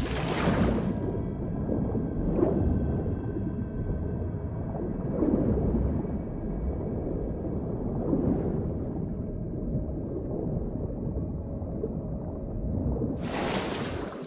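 Muffled water rumbles and swirls deep underwater.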